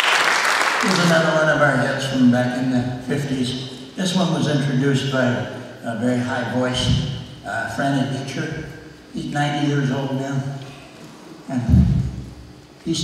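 An elderly man speaks into a microphone.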